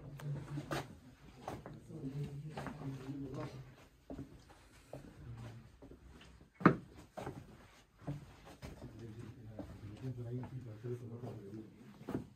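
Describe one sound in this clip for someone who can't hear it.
Footsteps scuff along a stone floor in a narrow, echoing passage.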